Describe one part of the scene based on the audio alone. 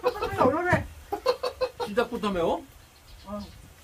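A young man chuckles nearby.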